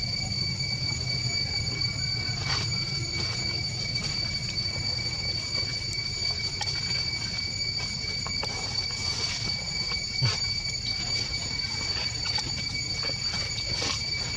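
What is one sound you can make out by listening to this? Dry leaves rustle and crunch under monkeys' feet.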